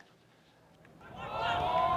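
A group of young people cheer and shout.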